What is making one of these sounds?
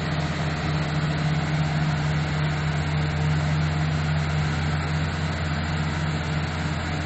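A bulldozer engine rumbles steadily nearby.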